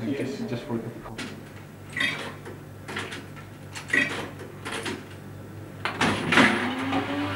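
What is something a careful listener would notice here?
Coins clink and clatter into a slot.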